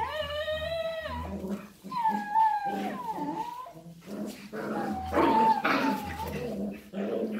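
Puppies whine and yelp in high voices.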